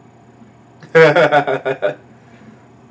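A man laughs in short bursts, close to the microphone.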